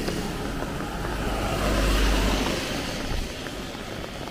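A car drives past close by with a rush of tyres on wet road.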